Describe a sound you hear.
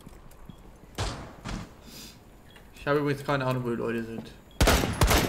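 Gunshots crack in quick bursts, bullets thudding into wood.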